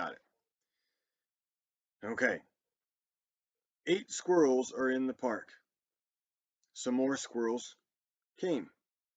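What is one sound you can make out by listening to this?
A man speaks calmly and close up into a microphone, with pauses.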